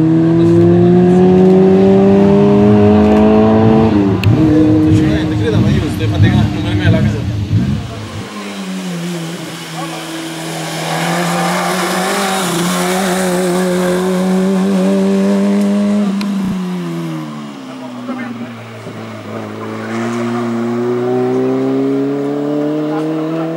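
A rally car engine revs hard, rising and falling in pitch.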